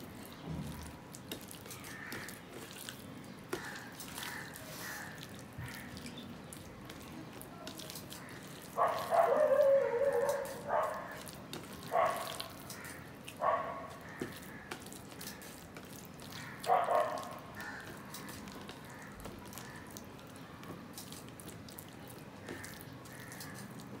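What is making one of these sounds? Fingers squish and mix soft food on a metal plate.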